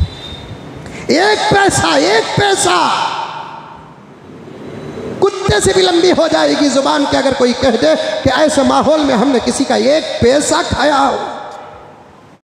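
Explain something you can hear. A man chants melodiously into a microphone, with some echo.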